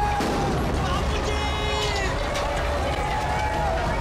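A crowd of men shouts while running.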